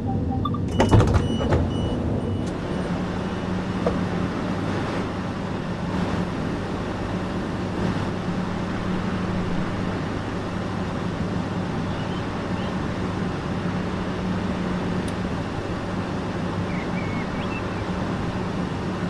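A stationary electric train hums steadily.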